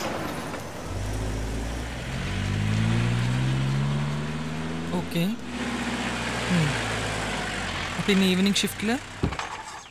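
A van engine rumbles as a van pulls away.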